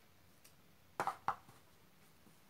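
A jar is set down on a box with a soft knock.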